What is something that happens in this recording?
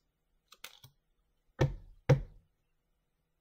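Playing cards knock against a table.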